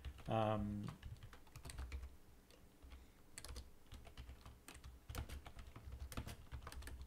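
Keys clatter on a keyboard as a man types.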